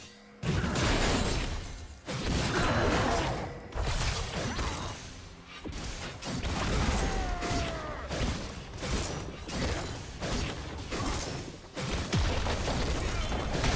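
Spell blasts and hits crackle and thud in a fast fight.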